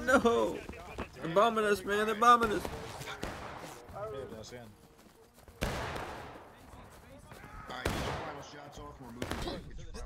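Rifle shots crack outdoors.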